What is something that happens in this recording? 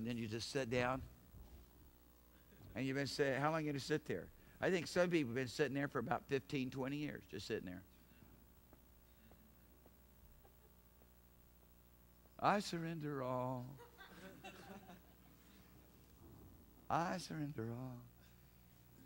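A middle-aged man speaks calmly, with pauses.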